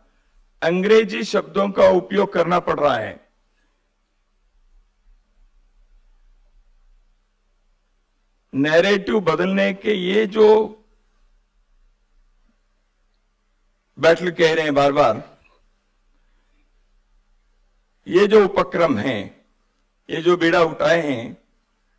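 An older man speaks through a microphone with emphasis, in short bursts with pauses.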